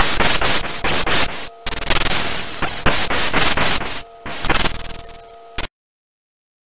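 Harsh electronic gunfire and explosions crackle loudly from a video game.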